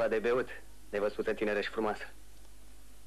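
A man answers calmly, close by.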